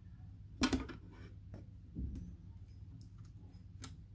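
Fingers press a small metal latch, which clicks and taps against plastic.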